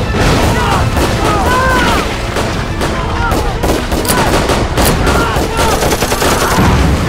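Men shout urgently amid the fighting.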